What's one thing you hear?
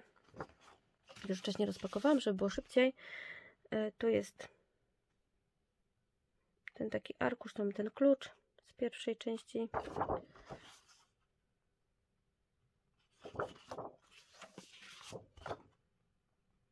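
Sheets of paper rustle and flap as they are handled.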